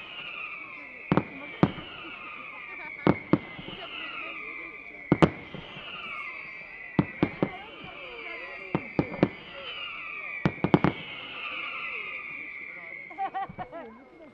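Fireworks whistle with a falling pitch, over and over.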